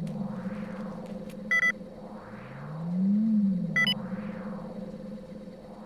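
A machine hums low and steady throughout.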